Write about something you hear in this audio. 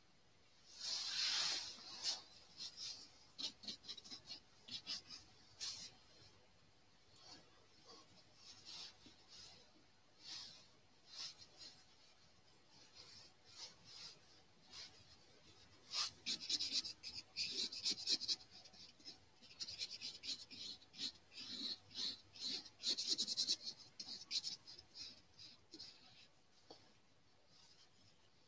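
A brush dabs and scrapes softly on paper.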